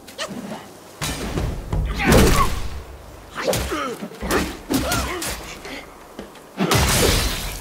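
Weapons clash and strike in a fight.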